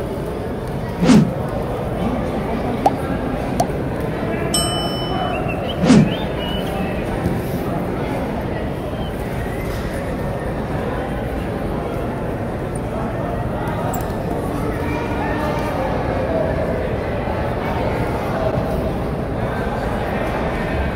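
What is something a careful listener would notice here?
Bare feet shuffle and thump on a mat.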